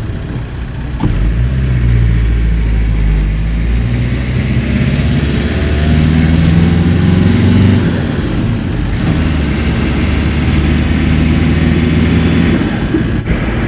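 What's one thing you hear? A car engine hums from inside the car, rising and falling in pitch as it speeds up.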